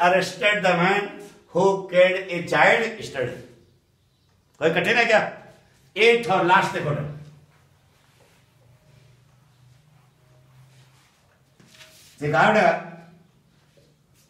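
A middle-aged man speaks calmly and clearly, close by.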